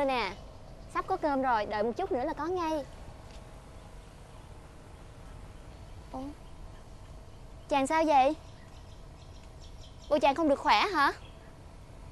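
A young woman speaks close by in a troubled voice.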